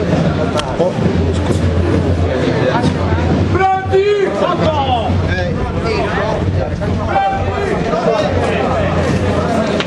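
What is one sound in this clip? A crowd of men talks and chants loudly outdoors.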